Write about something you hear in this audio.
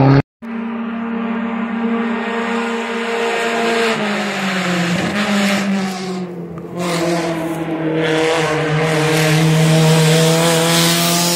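A rally car engine roars and revs as the car approaches at speed.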